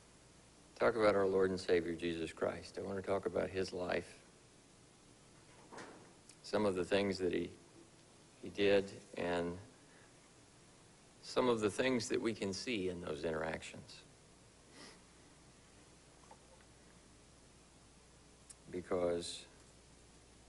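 A man speaks calmly into a microphone, in bursts with pauses, heard through a loudspeaker in a room.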